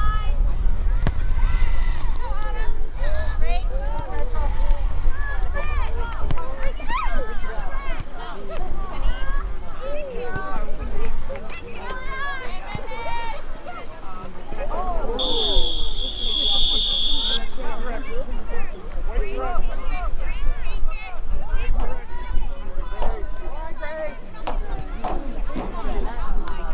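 A crowd of spectators talks and cheers nearby outdoors.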